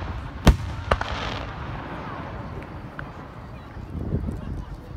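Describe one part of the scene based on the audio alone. Fireworks crackle and fizz as sparks fall.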